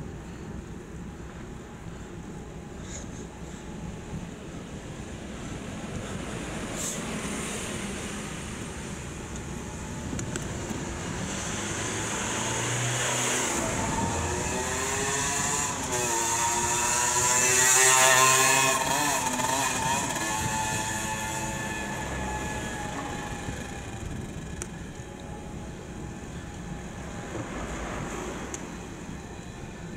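Bicycle tyres hum along a paved road.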